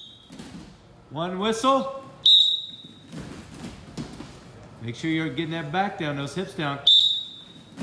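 A man calls out instructions nearby.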